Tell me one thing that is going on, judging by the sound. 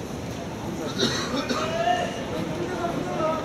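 Several men shout and cheer from the crowd.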